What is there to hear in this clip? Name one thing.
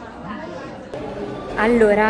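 A young woman speaks to the microphone up close.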